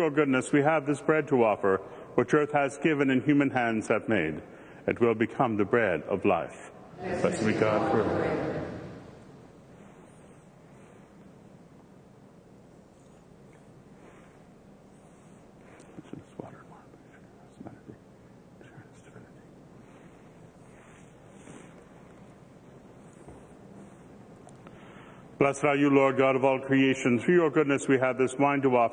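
An elderly man chants in a steady, sung voice through a microphone.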